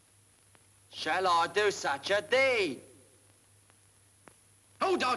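A second young man answers with feeling.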